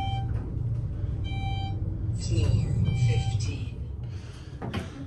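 An elevator hums as it rises.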